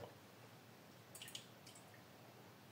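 Beaten eggs pour with a soft splash into a glass bowl.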